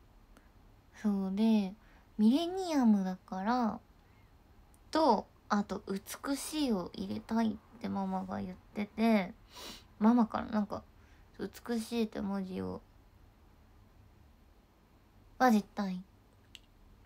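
A young woman speaks softly and casually close to a microphone.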